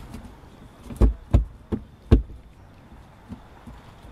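A device is tapped and knocked against its mount.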